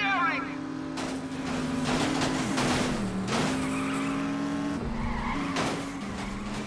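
A car scrapes and bangs against a wall.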